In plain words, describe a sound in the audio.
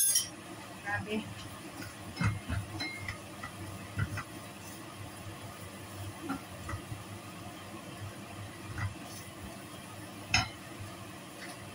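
A spatula scrapes and clinks against a frying pan.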